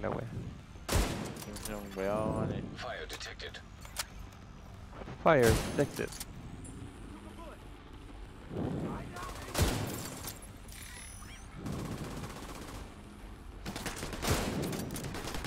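Sharp gunshots crack one at a time.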